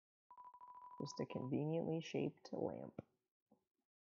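A young woman speaks casually and close to a microphone.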